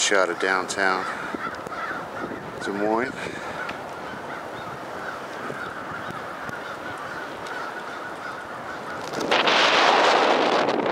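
A river flows gently.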